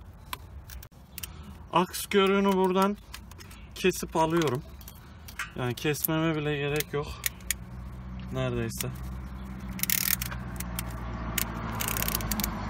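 Hand cutters snip and click against metal.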